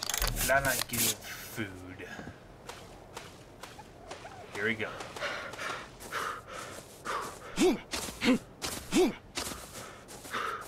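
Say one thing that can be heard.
Footsteps run quickly over sand and grass.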